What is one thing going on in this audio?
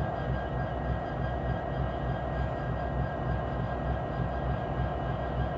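Diesel locomotive engines rumble and drone loudly close by.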